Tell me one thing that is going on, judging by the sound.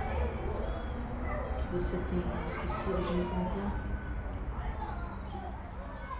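A woman speaks softly nearby.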